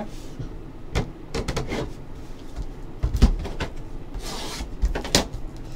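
Plastic card cases click and tap against each other.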